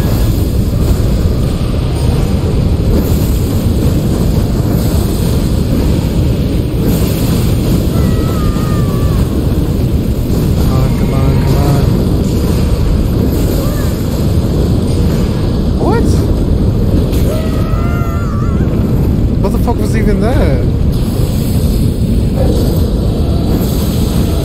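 A dragon roars and rumbles loudly.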